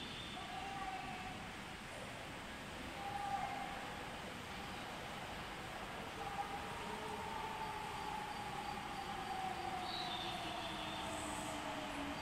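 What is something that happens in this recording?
A subway train approaches with a growing rumble and a falling electric whine, echoing through the station.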